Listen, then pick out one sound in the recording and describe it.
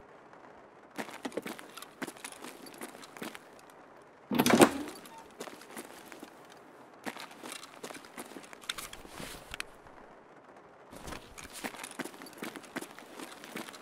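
Footsteps scuff and tap across a hard floor indoors.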